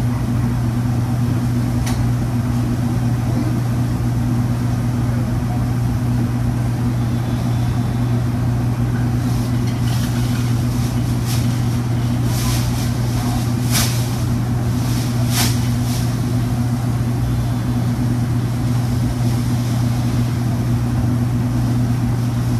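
An exhaust fan hums steadily.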